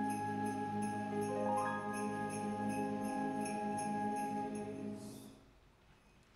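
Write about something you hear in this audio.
An orchestra plays a held closing chord that fades out.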